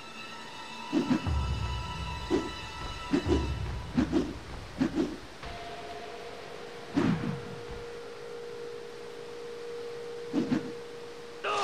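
Video game fight sounds thud and whoosh.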